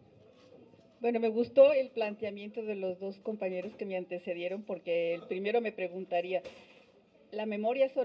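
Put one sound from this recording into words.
An elderly woman speaks with animation into a microphone, close and loud.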